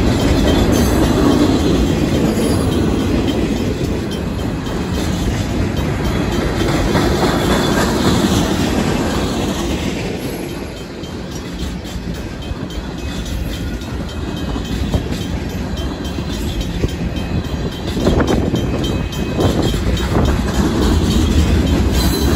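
A freight train rumbles past close by, its wheels clattering on the rails.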